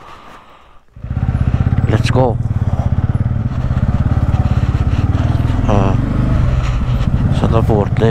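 A motorcycle engine chugs loudly as the motorcycle rides along.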